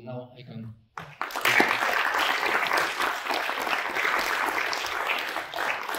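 People applaud.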